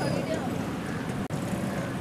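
A motor rickshaw engine idles nearby.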